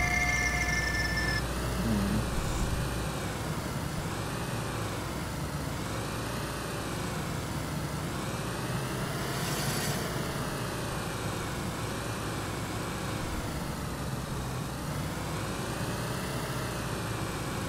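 A car engine hums steadily, rising and falling as the car drives.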